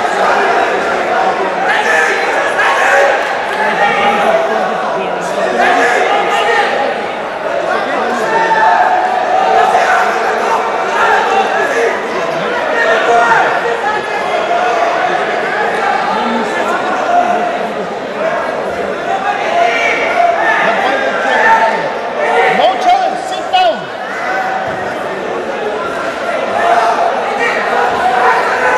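A crowd in a large echoing hall chatters and calls out throughout.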